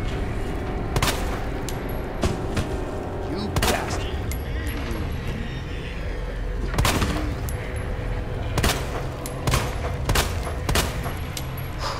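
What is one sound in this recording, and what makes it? Gunshots ring out loudly in bursts.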